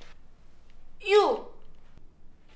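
A young woman shouts sharply.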